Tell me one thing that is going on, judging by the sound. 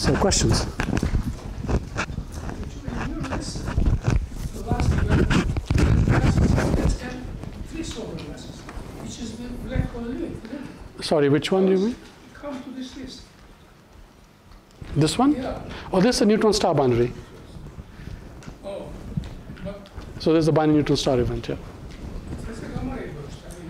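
A man lectures through a microphone in a large echoing hall.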